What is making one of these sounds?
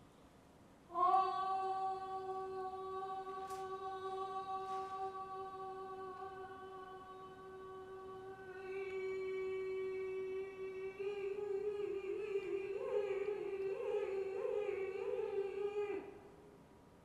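A young woman sings a long, steady held note that later wavers.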